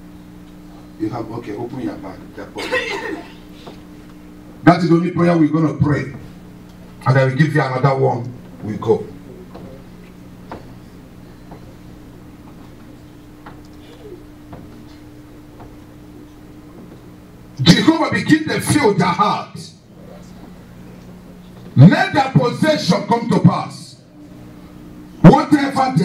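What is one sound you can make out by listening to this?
A man preaches forcefully through a microphone in an echoing hall, in bursts with long pauses.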